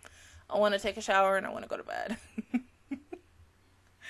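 A young woman laughs into a close microphone.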